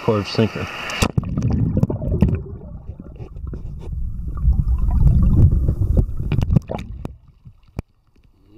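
Water gurgles and rumbles, heard muffled from under the surface.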